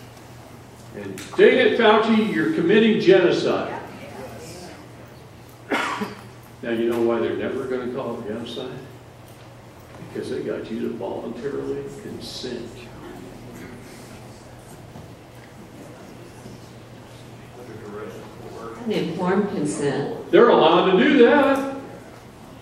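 A middle-aged man speaks with animation in a hall, heard through a microphone.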